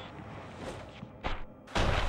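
Heavy blows land in a close fight.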